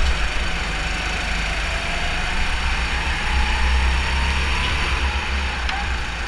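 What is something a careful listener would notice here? Go-kart engines drone loudly close by.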